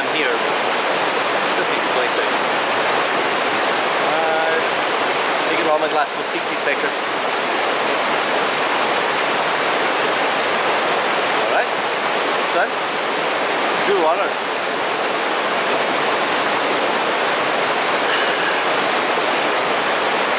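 A stream rushes steadily over rocks close by.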